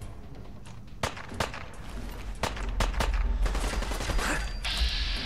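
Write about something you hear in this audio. Gunshots ring out sharply.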